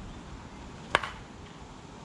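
A bat cracks against a softball.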